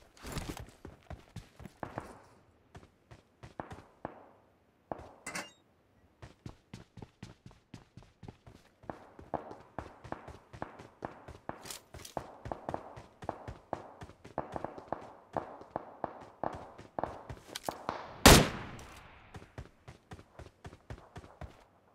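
Footsteps thud quickly and rhythmically as a soldier runs across hard ground.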